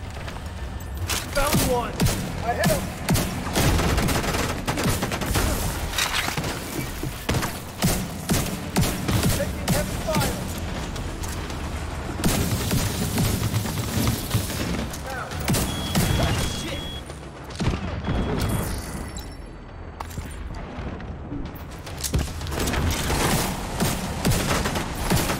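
Automatic rifles fire in rapid bursts.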